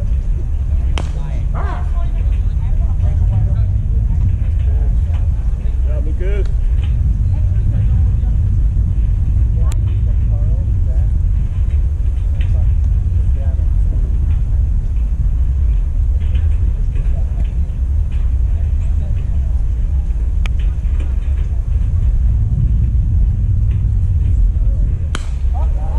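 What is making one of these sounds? A baseball smacks into a catcher's mitt now and then.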